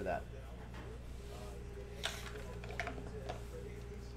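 Dice rattle and clatter onto a table.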